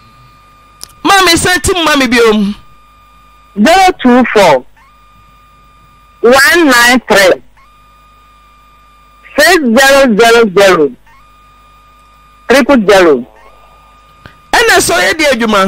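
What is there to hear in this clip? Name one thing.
A woman speaks calmly into a close microphone, in short bursts with pauses.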